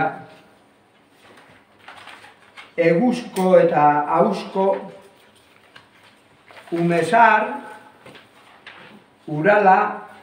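An older man speaks calmly in a room with a slight echo, pausing between phrases.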